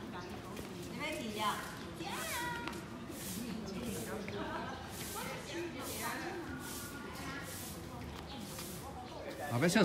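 A broom sweeps across paving stones with scratchy strokes.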